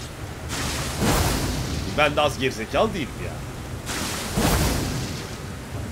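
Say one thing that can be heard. Sword swings whoosh and slash.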